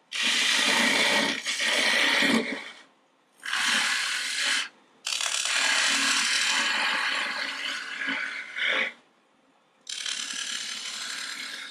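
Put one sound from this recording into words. A gouge cuts into spinning wood in bursts of rough, hissing scraping.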